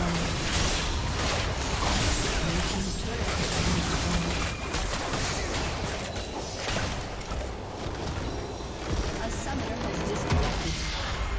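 Magic blasts and clashing spell effects crackle and boom throughout a fight.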